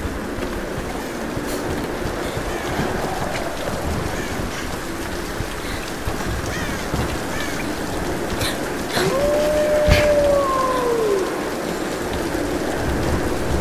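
A torch flame crackles and roars steadily.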